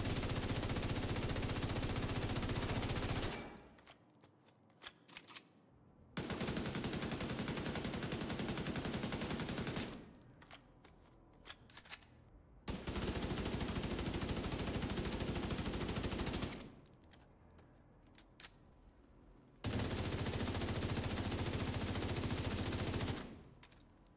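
An automatic rifle fires long, rapid bursts in a hard-walled room.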